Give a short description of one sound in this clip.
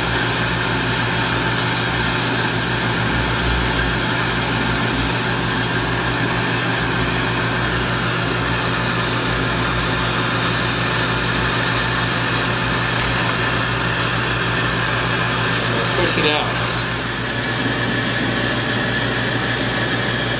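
A gas torch flame hisses and roars steadily.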